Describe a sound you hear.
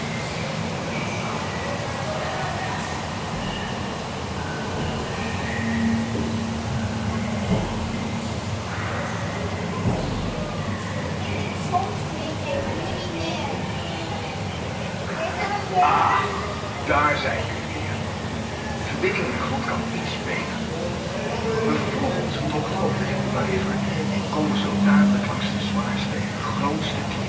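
Water splashes and flows steadily nearby.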